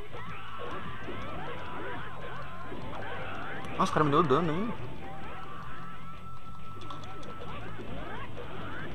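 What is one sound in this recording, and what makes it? Fighters clash in a video game with rapid hits and whooshes.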